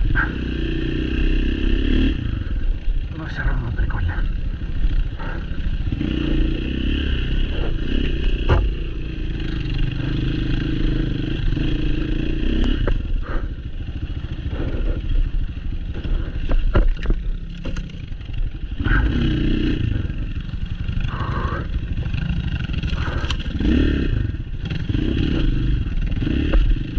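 Tyres crunch and bump over a rough dirt trail.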